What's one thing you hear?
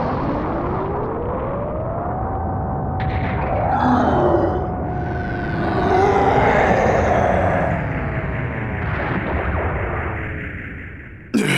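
A huge energy blast roars and rumbles.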